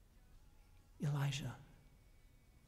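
A man speaks loudly into a microphone in a reverberant hall.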